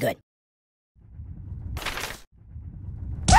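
A cartoon ragdoll tumbles about with soft thuds.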